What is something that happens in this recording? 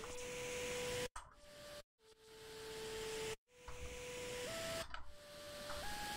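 A synthesizer plays steady electronic tones that break off and step between pitches.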